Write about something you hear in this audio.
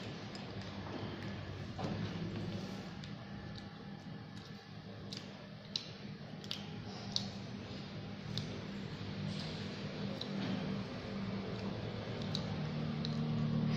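Knitting needles click and tick softly against each other.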